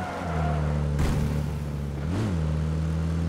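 Tyres bump over rough ground with a thud.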